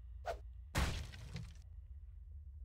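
Wooden boards crash and splinter as they are smashed apart.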